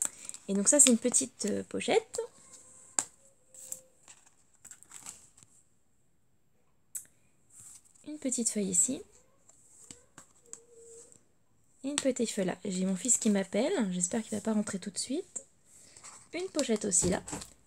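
Stiff paper pages are flipped and turned with a soft rustle.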